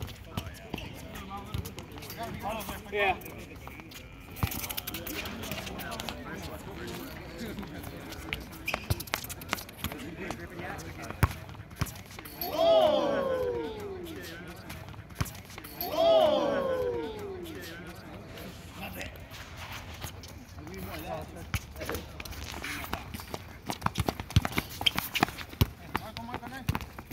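A ball thuds as it is kicked and bounces on a hard court.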